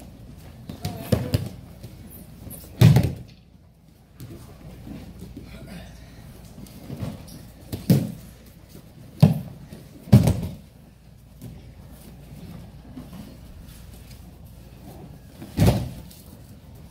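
Bodies thud heavily onto a padded mat in a large echoing hall.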